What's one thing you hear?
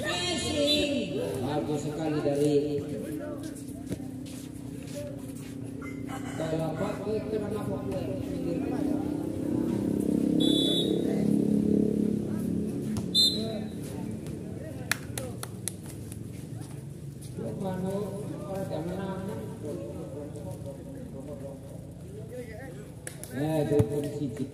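A crowd of men talk and shout outdoors.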